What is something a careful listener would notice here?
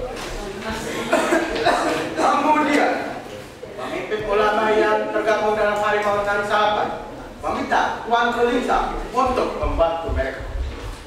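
A young man reads aloud from a sheet, speaking loudly.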